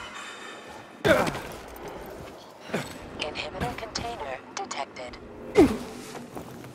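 Heavy footsteps land with loud thuds on hard surfaces.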